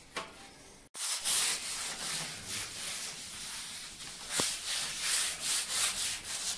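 Sandpaper rubs against a board with a rough hiss.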